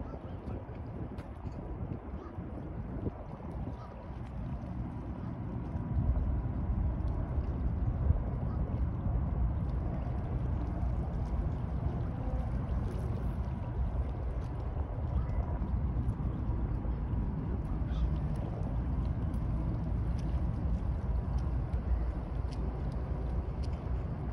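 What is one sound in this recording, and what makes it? Water laps gently against a shore.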